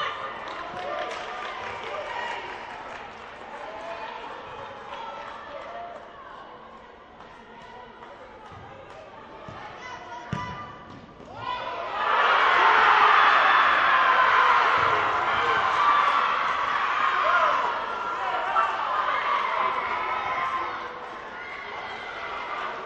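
Players call out to each other across an echoing hall.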